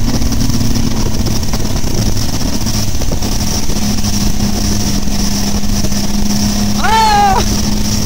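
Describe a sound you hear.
An outboard motor drones steadily at speed.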